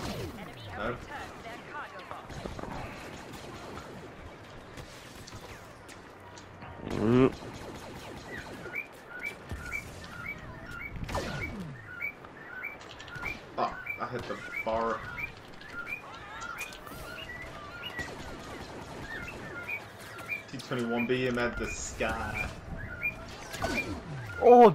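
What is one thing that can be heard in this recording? Laser blasters fire in sharp, zapping bursts.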